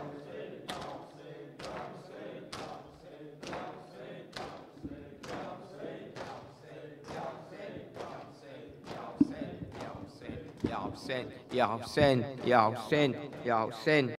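A man speaks into a microphone in an echoing hall.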